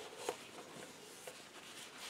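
A tissue rubs and rustles against a metal nut.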